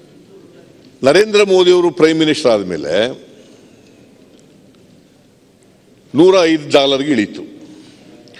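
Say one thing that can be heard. A man speaks loudly with animation through a microphone in a large echoing hall.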